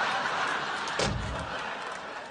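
A door slams shut.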